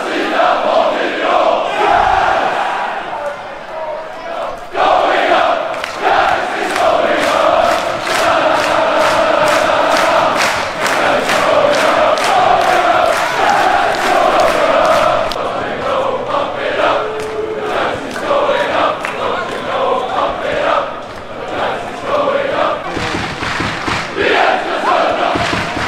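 A large football crowd chants in unison in an open-air stadium.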